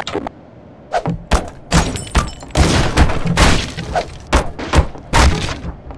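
Wooden furniture smashes and splinters under heavy blows.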